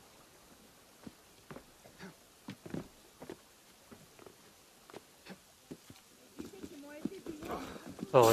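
Footsteps patter quickly on cobblestones.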